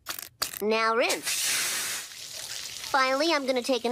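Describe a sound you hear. A suction tube hisses and gurgles.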